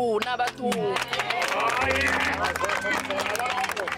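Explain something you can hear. A crowd sings and chants nearby.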